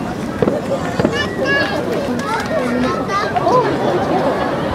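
Firework rockets whistle as they shoot upward.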